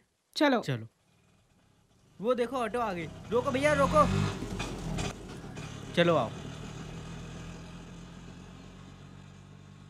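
An auto rickshaw engine putters steadily nearby.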